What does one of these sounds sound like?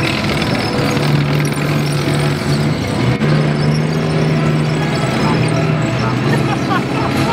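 Engines rev with a deep, rising growl.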